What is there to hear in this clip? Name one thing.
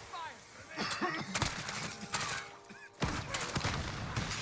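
Rapid gunshots crack from a video game.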